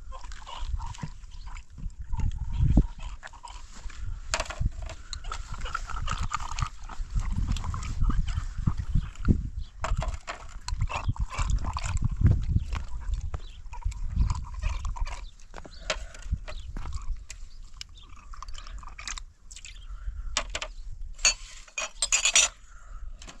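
Small glass items clink against each other on a tray.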